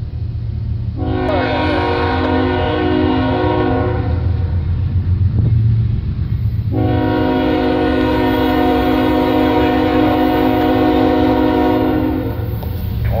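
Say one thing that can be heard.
A train horn blows in two long blasts from a distance.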